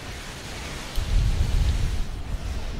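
Explosions rumble deeply.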